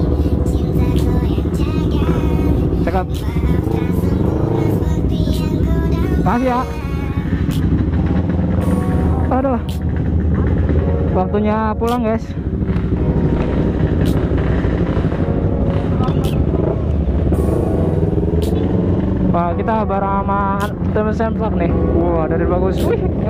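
A motorcycle engine idles with a steady low rumble nearby.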